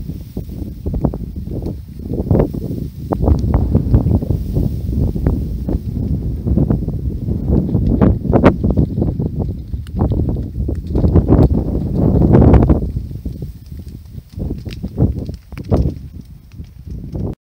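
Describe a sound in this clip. Strong wind gusts buffet outdoors, rumbling loudly.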